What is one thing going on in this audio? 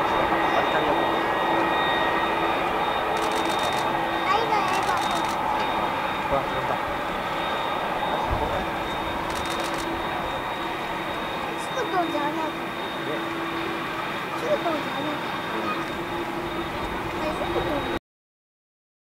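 A four-engine jumbo jet roars at full thrust as it takes off in the distance.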